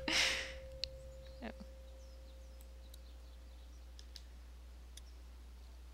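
Metal keys clink against a handcuff lock.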